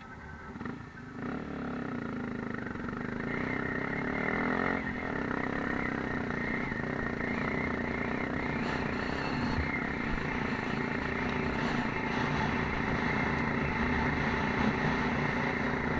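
A motorbike engine hums steadily up close.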